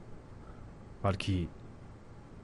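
A teenage boy speaks quietly, close by.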